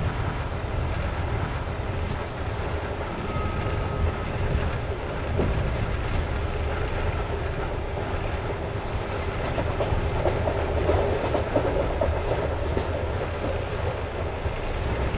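Wheels clatter over the rail joints.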